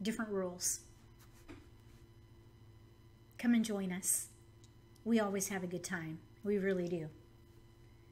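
A woman talks calmly and with animation into a microphone, in short bursts.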